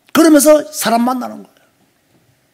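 A middle-aged man speaks with emphasis through a microphone.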